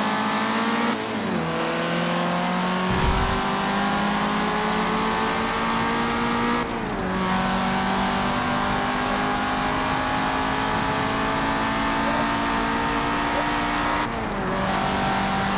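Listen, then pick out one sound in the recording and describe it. A racing car engine drops in pitch briefly at each gear change.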